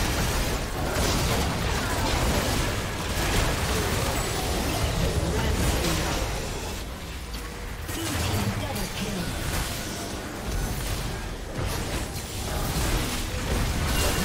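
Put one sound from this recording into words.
Video game spells crackle and explode in a busy battle.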